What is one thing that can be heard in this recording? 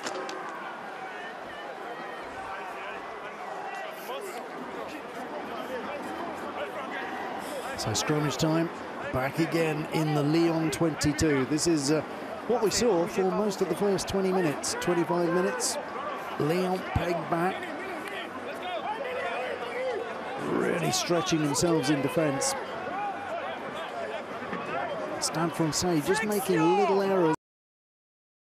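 A stadium crowd murmurs in the distance.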